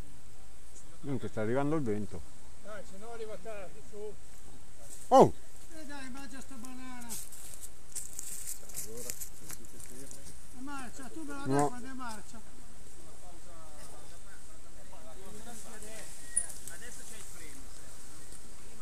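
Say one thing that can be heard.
A man talks outdoors close by, with animation.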